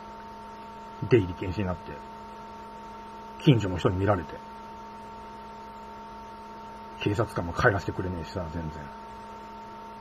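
A man speaks calmly in short bursts, close to a microphone.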